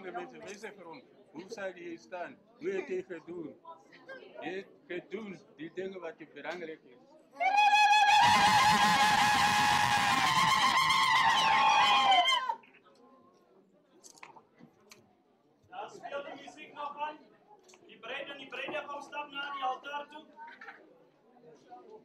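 A crowd of women and men talk and chatter excitedly close by.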